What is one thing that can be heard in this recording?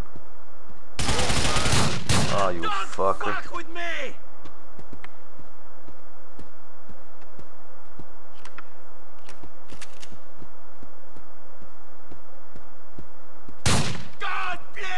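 A shotgun fires loudly with a short echoing ring.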